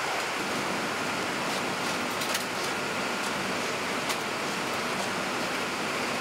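A loaded cart rolls out on metal rails with a low rumble.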